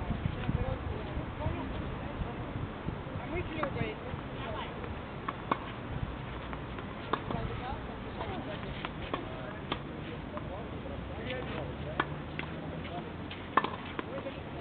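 A tennis ball is struck sharply by rackets in a rally outdoors.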